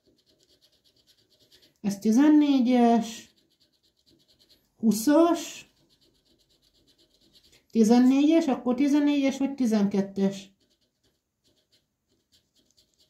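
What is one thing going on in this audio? A coin scratches across a paper card in short rasping strokes.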